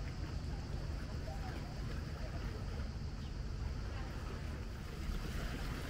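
Water laps gently against a stone wall.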